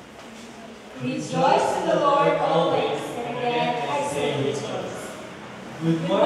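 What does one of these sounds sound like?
A young woman speaks into a microphone, heard over loudspeakers in a large echoing hall.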